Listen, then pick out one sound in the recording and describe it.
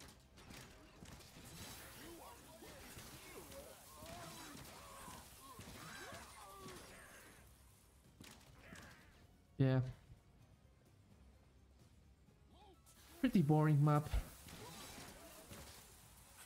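Magic blasts whoosh and crackle in a video game.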